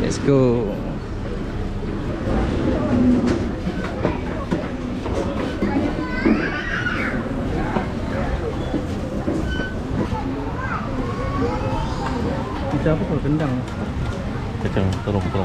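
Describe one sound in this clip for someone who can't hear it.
A crowd of people chatters in a busy open hall.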